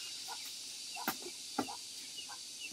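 A loaded basket thumps down onto a dirt floor.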